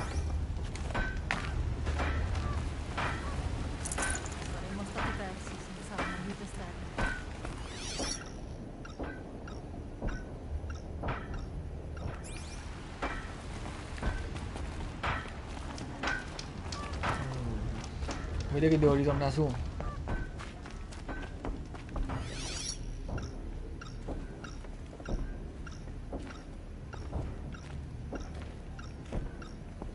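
Footsteps and clicks tap steadily in a video game.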